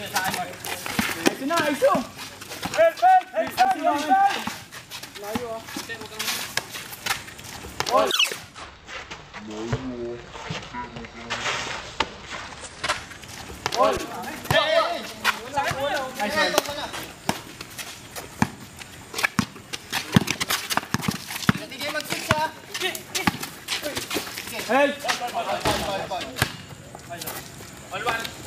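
A basketball bounces on a concrete court.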